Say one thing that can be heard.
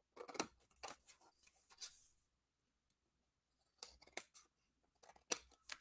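Scissors snip through card.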